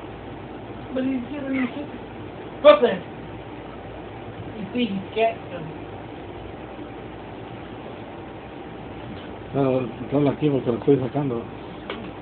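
A cat growls and yowls in short bursts.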